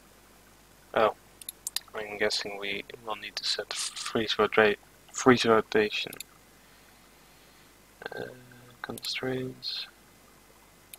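A young man speaks casually into a headset microphone, close by.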